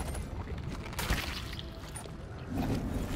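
A bright magical chime rings as an item is picked up.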